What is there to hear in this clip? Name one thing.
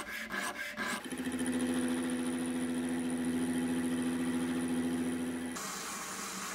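A lathe hums steadily as a cutting tool turns metal.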